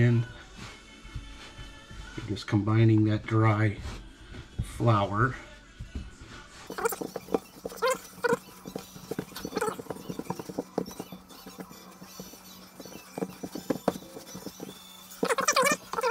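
Hands knead soft dough with quiet squishing and patting.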